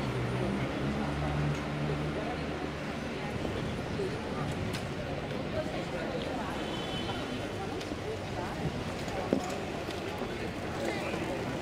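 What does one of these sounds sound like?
Footsteps walk on pavement nearby.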